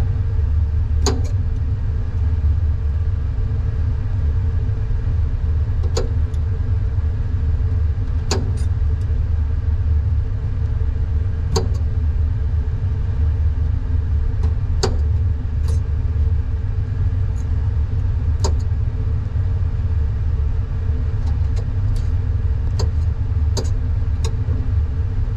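Metal tweezers click and scrape against a metal tray.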